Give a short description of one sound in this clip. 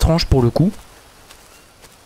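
Leafy plants rustle as they are pushed aside.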